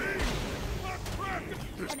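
A bright chime rings out for a level-up.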